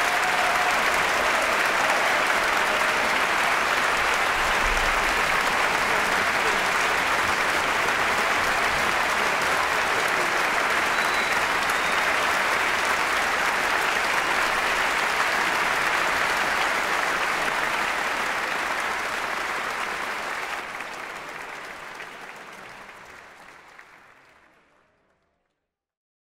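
A large audience applauds loudly in a big echoing hall, and the applause slowly fades away.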